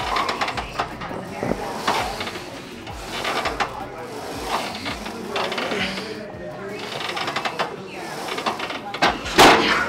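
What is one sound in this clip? A weight machine clanks as a leg press moves.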